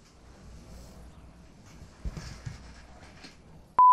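An office chair creaks as someone gets up.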